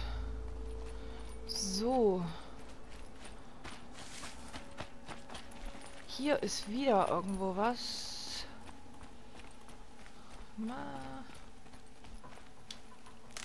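Footsteps rustle through grass and over rough ground.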